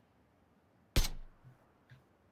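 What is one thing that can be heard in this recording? A scoped rifle fires a single shot.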